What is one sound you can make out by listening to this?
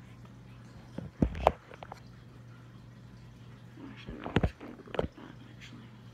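A hand bumps and knocks against the microphone.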